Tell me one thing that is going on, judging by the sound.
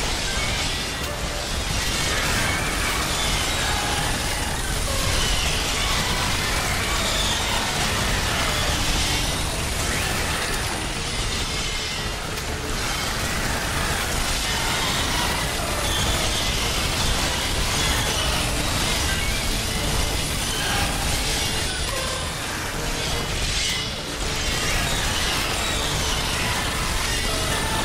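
Giant insects buzz loudly.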